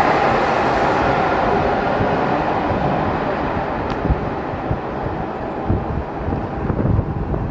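The rumble of a departing subway train fades away down an echoing tunnel.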